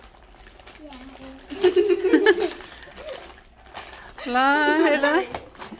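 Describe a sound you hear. A plastic snack bag crinkles as a girl opens it.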